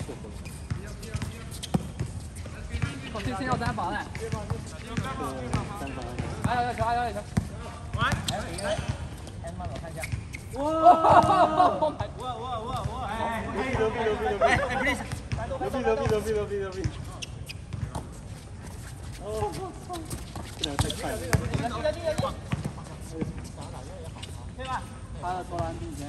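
Sneakers squeak and shuffle on the court.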